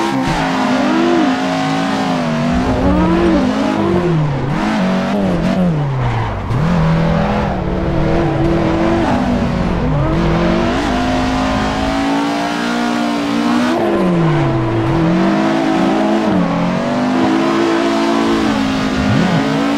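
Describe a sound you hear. Tyres screech while the car slides through bends.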